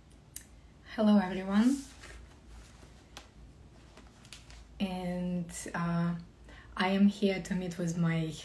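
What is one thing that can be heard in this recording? A young woman speaks calmly and brightly, close to a microphone.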